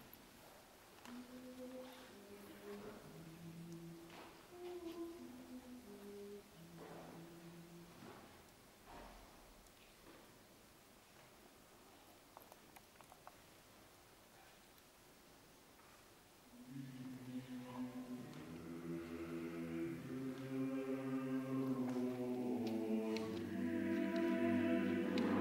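A choir sings a slow hymn in a large echoing hall, swelling louder toward the end.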